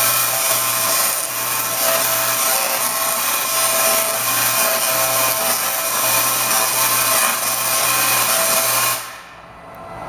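Electric sparks buzz and crackle loudly in a steady harsh roar, then cut off abruptly.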